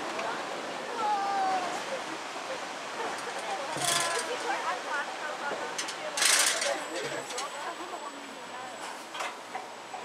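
Young riders chatter and call out nearby.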